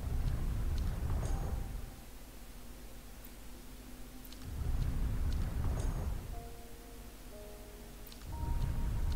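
A heavy metal mechanism rumbles and grinds as it turns.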